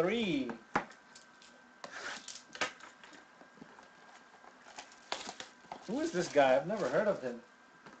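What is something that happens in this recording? A cardboard box is handled and tapped.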